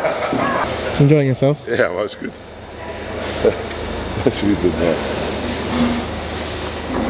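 A middle-aged man talks and laughs cheerfully, close up.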